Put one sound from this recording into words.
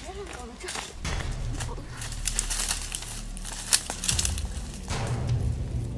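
Leaves and branches rustle and scrape close by.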